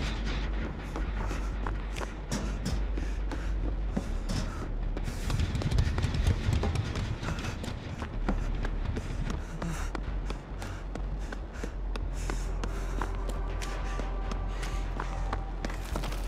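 Footsteps run quickly over a hard floor.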